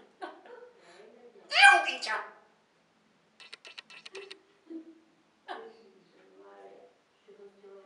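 A parrot chatters and whistles close by.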